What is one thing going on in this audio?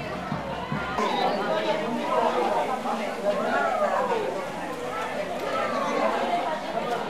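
A crowd of men and women chatters and calls out while walking.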